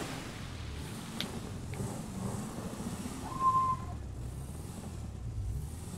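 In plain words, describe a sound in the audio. Car tyres rumble over a rough surface.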